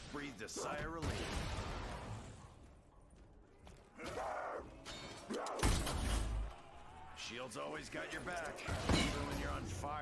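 A heavy energy weapon fires with a booming blast.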